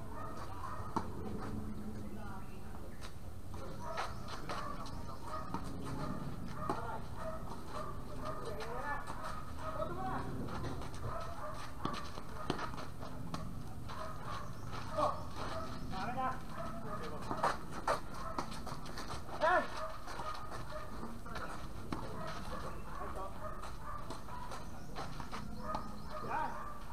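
A tennis ball is struck with a racket again and again outdoors.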